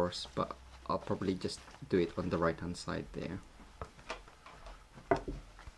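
A plastic sheet crinkles as hands handle it.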